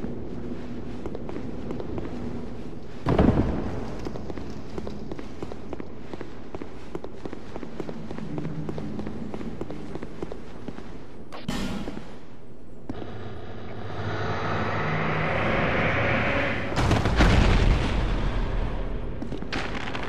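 Armoured footsteps run across stone.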